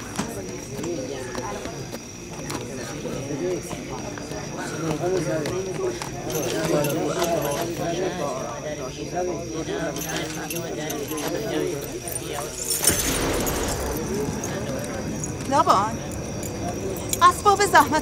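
A crowd of men and women murmur and talk together nearby.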